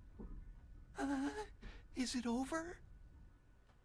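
A man speaks in a strained, anxious voice.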